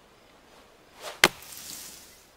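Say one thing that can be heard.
A golf club swishes and strikes a ball with a sharp crack.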